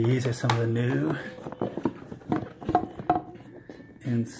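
Sneakers knock and scrape against a cardboard box as they are handled.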